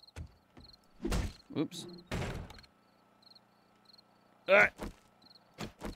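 A wooden door splinters and crashes as it is smashed.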